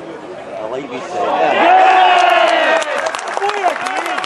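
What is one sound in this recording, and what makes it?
A crowd of spectators cheers and shouts loudly.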